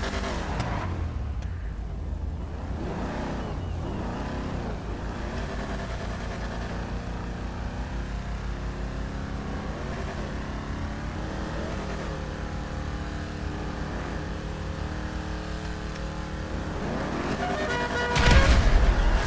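Car engines idle and rumble steadily.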